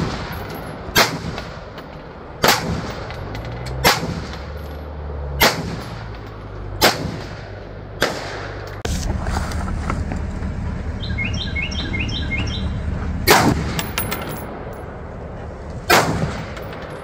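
A rifle fires single loud shots outdoors, each one echoing away.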